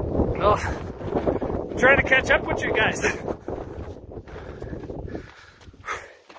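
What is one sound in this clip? Footsteps crunch on a snowy dirt trail.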